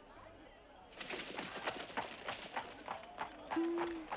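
Horse hooves clop on the ground as a horse walks off.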